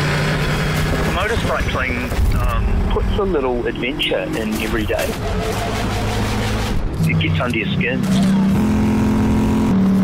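A motorcycle engine roars as the bike speeds along a road.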